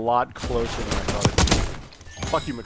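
Gunfire cracks in quick bursts.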